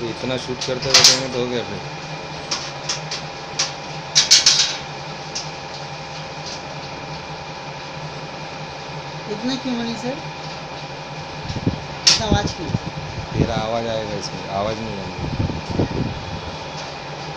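Metal tools click and tap against a metal panel.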